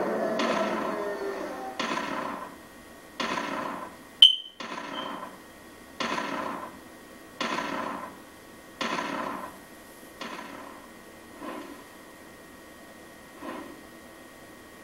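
Repeated whooshing blasts from a creature's attack come at a steady pace and slowly fade.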